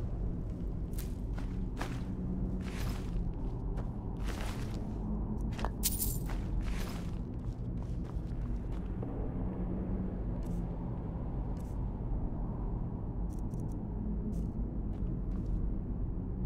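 A low, steady rumbling drone fills a cave.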